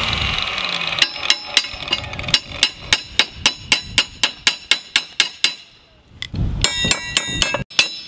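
A hammer taps a punch into metal with quick, ringing blows.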